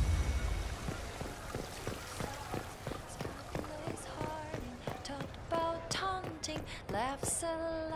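Footsteps run on cobblestones outdoors.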